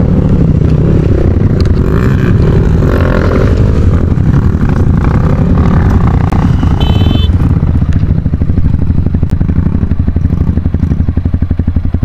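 Dirt bike engines idle and rev loudly nearby.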